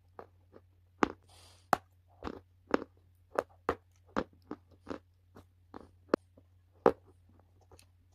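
A person crunches loudly on a crumbly food close to a microphone.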